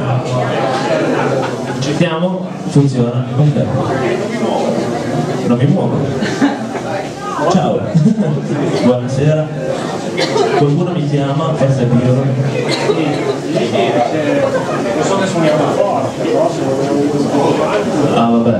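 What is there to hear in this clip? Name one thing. A man sings into a microphone, amplified through loudspeakers.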